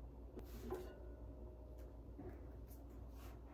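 A small metal table rattles and knocks as it is rocked and moved.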